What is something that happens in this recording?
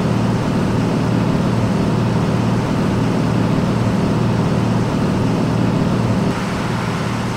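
A truck engine drones steadily, loud and close inside the cab.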